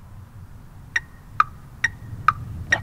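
Drumsticks click in sharp, evenly spaced taps.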